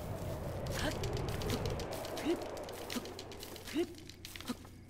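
Grass crackles and hisses as it burns.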